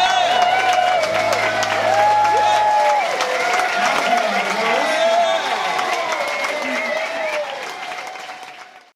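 A woman sings into a microphone on a stage.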